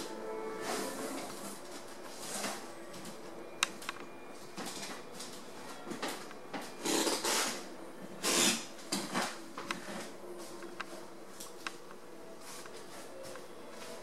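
Soft electronic music plays quietly from a speaker.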